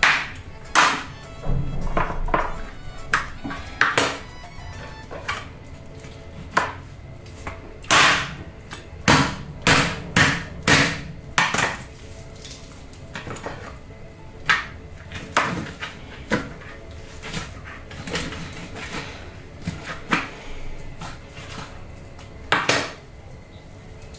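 A knife chops and cuts through raw meat on a plastic cutting board.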